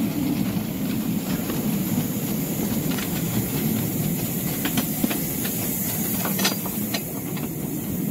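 Leaves and branches brush and rustle against the side of a boat.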